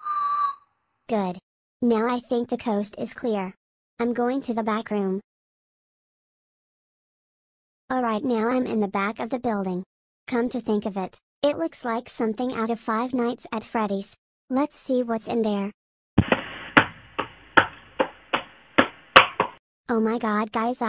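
A boy speaks in a flat, computerised voice, close by.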